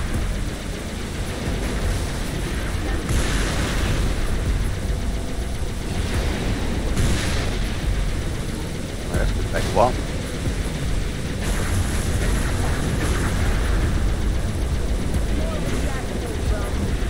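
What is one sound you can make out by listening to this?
Energy weapons fire in hissing bursts.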